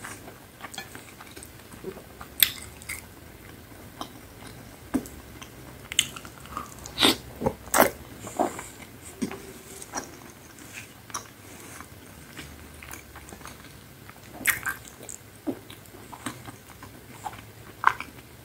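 Crumbly food crackles and rustles between fingers close to a microphone.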